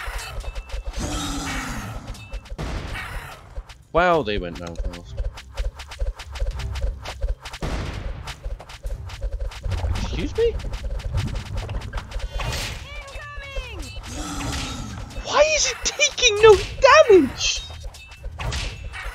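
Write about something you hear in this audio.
Swords clash and weapons strike in a battle.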